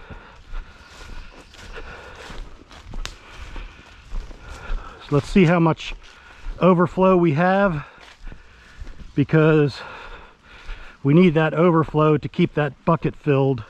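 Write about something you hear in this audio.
Footsteps rustle and crunch through leafy undergrowth.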